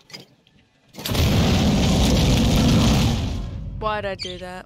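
A loud explosion roars and rumbles.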